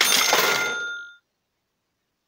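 A bright victory jingle chimes and fades.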